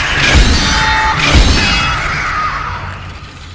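A futuristic gun fires with loud blasts.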